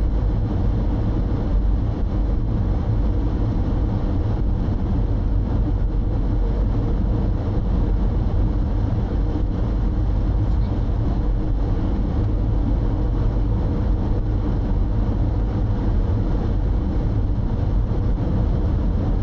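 A car's engine hums steadily as it drives along a road.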